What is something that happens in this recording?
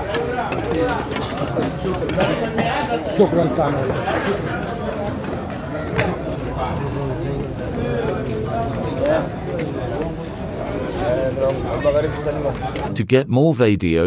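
A crowd of men chants together outdoors.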